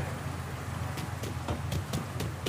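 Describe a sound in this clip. Footsteps fall on pavement.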